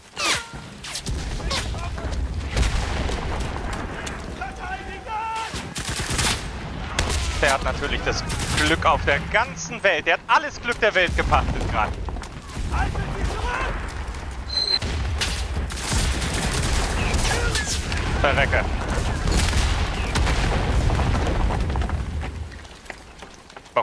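Battle noise rumbles low and steady.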